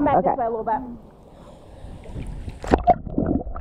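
Sounds turn muffled and hollow underwater.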